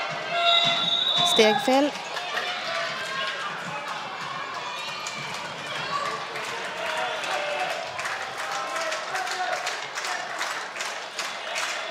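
Children shout and call out across an echoing hall.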